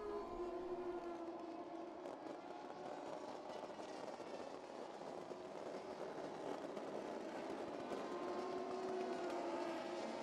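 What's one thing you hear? Fireworks hiss and crackle loudly outdoors.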